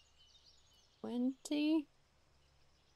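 A young woman speaks briefly into a close microphone.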